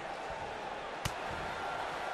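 A sharp slap of a blow lands once.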